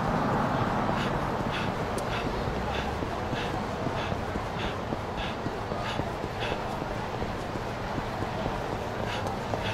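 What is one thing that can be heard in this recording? Footsteps run quickly on wet pavement.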